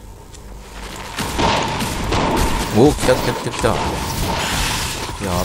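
Fiery explosions burst in a fierce fight.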